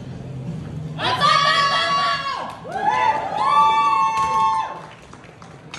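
Men shout loudly in an echoing hall.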